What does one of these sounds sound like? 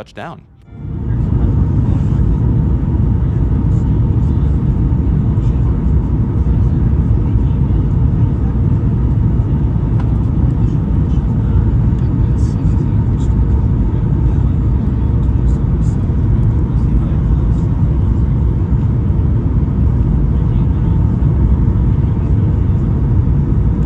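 A jet engine roars steadily inside an airplane cabin.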